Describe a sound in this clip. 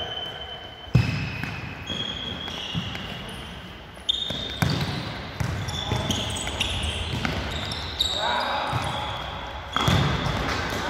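A ball is kicked hard and thuds, echoing in a large hall.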